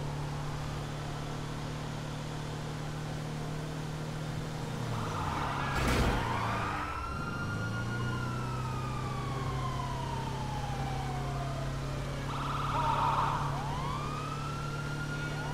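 A van engine hums steadily as it drives along.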